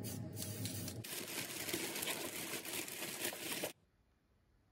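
A spray can hisses briefly.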